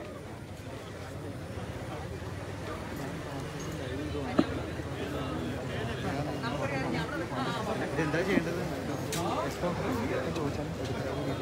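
A crowd of men chatters and shouts outdoors nearby.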